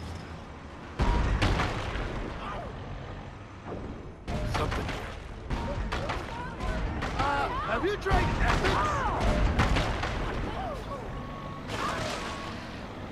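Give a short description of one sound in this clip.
Bodies thud and splatter against a vehicle.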